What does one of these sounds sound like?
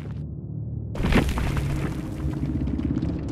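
An electronic whoosh sweeps in loudly.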